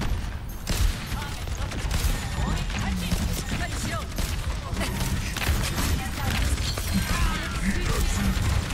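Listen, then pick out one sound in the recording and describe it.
Energy blasts and explosions burst around.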